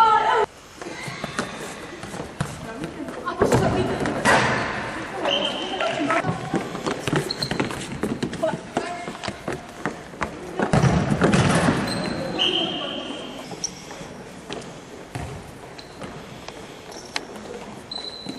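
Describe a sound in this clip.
Girls shout and call out to each other across the hall.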